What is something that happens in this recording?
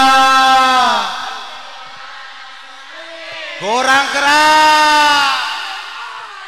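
An elderly man sings loudly through a microphone and loudspeakers.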